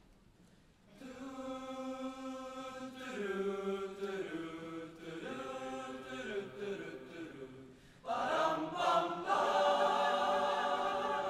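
A large choir sings in harmony in a big hall.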